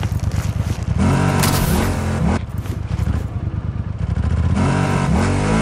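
A motorcycle engine roars up close.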